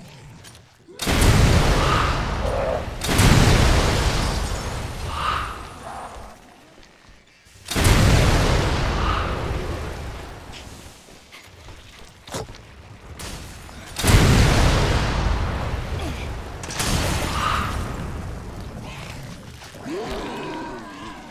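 Explosions boom and rumble, then fade.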